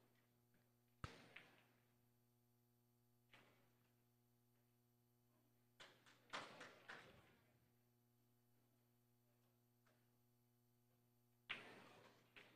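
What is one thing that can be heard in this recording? Billiard balls click sharply together.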